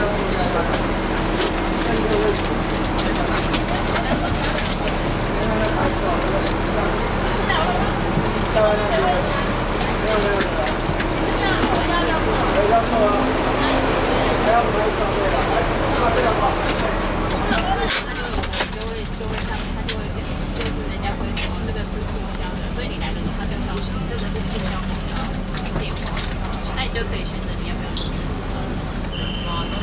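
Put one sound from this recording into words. A bus engine idles with a low, steady hum.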